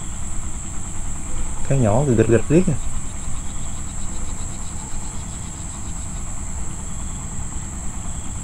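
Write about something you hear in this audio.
Wind blows softly through tall grass outdoors.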